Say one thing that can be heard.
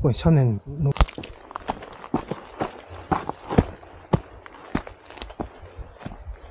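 Footsteps crunch through dry brush and twigs.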